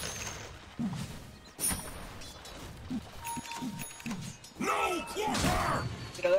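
Game combat sound effects clash and whoosh.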